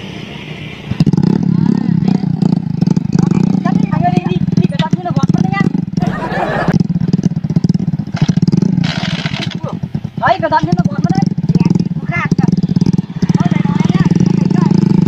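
A motorbike engine rumbles and revs as its rider tries to drive out of loose straw.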